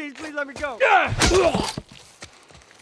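A wooden plank strikes a body with heavy thuds.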